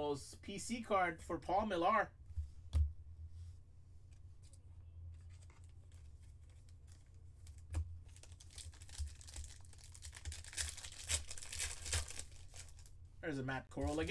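Trading cards slide and tap against each other in someone's hands.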